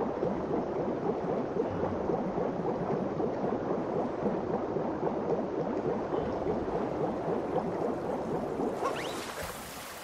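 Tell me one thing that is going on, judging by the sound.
A low, muffled underwater rumble fills the air.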